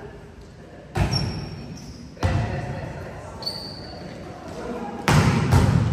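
A volleyball is struck hard, with loud thumps echoing in a large hall.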